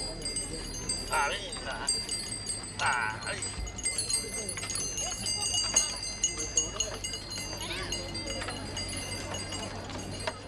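Wooden cart wheels rumble and creak on the road.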